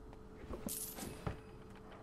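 Small metal jewellery clinks as it is picked up.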